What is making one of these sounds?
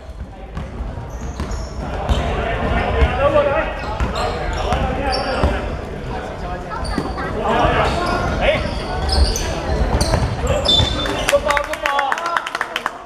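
Men shout and call to each other in a large echoing hall.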